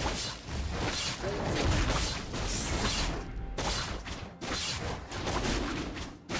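Fantasy battle sound effects of spells and blows crackle and burst rapidly.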